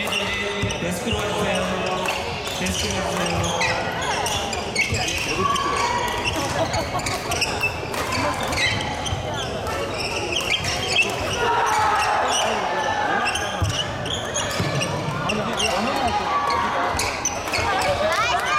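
Rackets smack a shuttlecock back and forth.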